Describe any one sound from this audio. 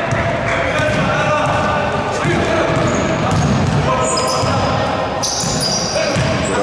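Men shout and call out across the hall.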